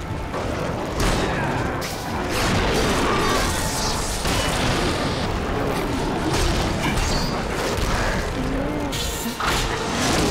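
Swords clash and strike in a battle.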